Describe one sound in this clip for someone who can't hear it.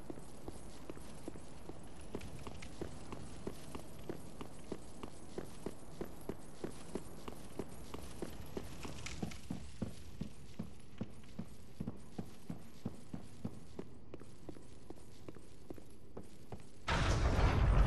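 An armoured figure runs with quick footsteps on stone.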